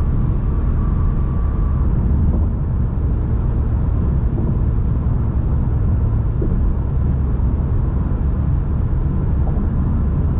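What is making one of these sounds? Tyres roll steadily on a road.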